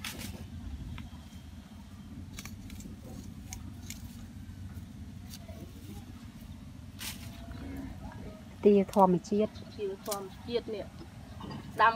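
Stiff plant leaves rustle and brush against hands.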